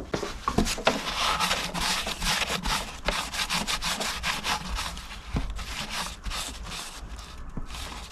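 A cloth rubs and scrubs against metal.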